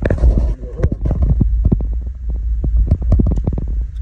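A hand rummages in a fabric bag with a rustle.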